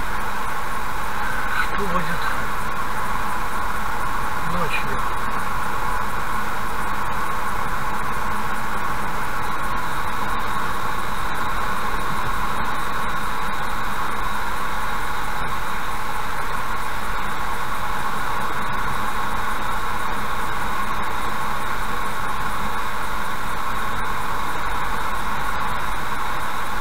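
Tyres hum steadily on a wet road from inside a moving car.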